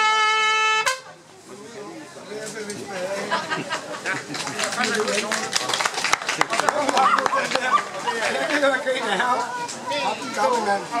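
A brass band plays a lively march outdoors.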